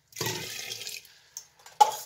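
Water pours from a kettle into a glass jar.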